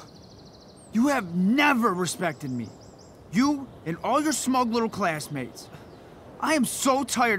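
A man shouts angrily, close by.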